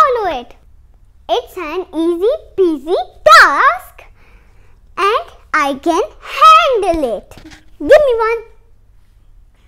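A young boy speaks with animation into a close microphone.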